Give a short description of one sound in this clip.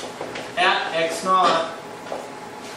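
A man speaks in a lecturing tone in an echoing room.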